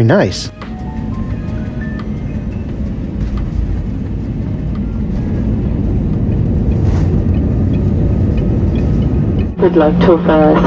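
A jet engine roars steadily and grows louder.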